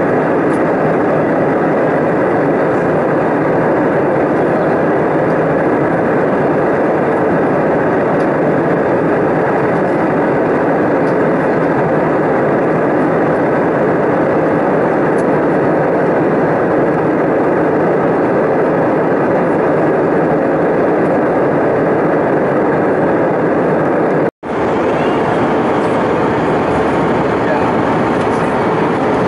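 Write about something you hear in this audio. Jet engines roar steadily inside an airliner cabin in flight.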